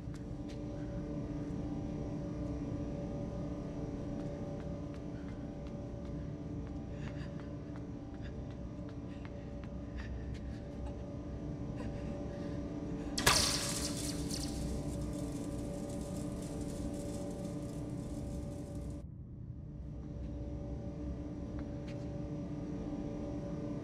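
Small footsteps patter on a metal walkway.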